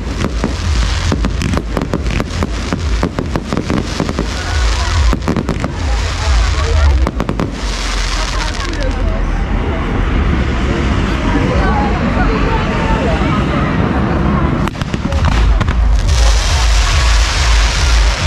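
Fireworks crackle and bang in rapid bursts nearby.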